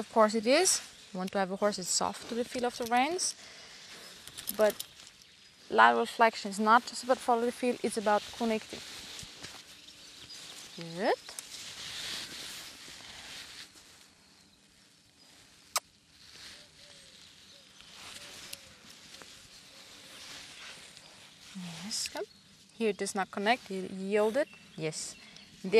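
A young woman speaks calmly and clearly close by, with pauses.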